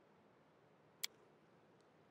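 A short click sounds as a menu choice is picked.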